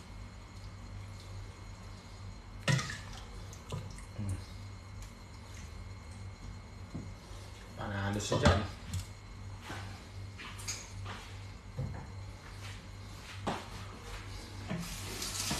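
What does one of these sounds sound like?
Metal utensils clink and scrape against a pot.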